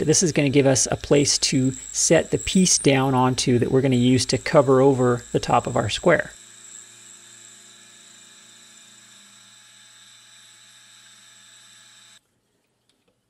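A milling machine motor hums steadily.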